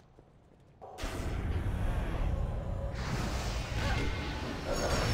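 Blows land in a fight.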